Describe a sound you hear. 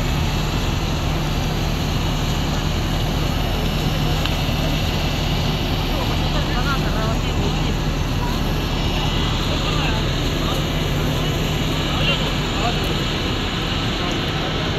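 A large bus engine idles with a steady low hum.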